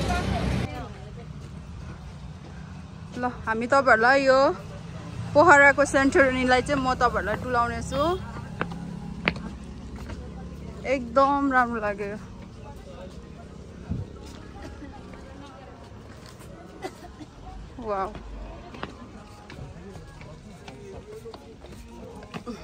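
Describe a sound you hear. Footsteps scuff on concrete steps.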